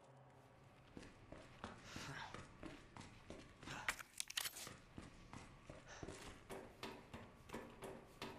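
Footsteps walk quickly on a hard floor.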